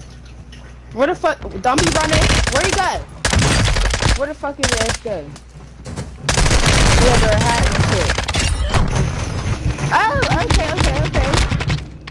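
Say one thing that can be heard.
Rapid gunfire rings out in bursts.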